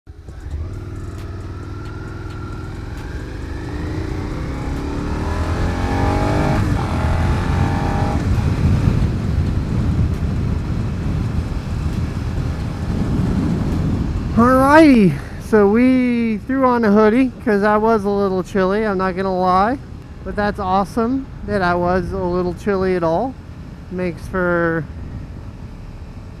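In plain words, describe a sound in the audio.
A motorcycle engine hums and rises in pitch as it speeds up.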